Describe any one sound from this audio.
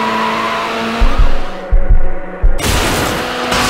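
A car crashes with loud thuds and scrapes.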